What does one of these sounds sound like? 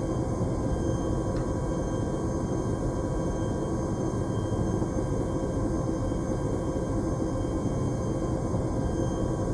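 An aircraft engine drones loudly and steadily inside a cabin.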